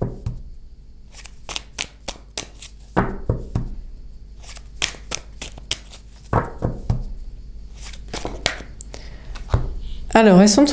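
Cards click and flick as a deck is shuffled by hand.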